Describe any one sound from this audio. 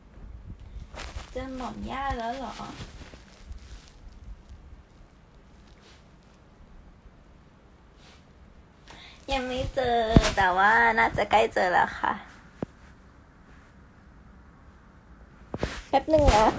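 A young woman speaks softly and close to a phone microphone.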